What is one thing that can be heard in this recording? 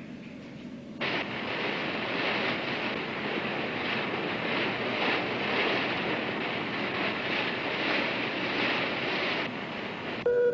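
Stormy waves crash and roar against a ship.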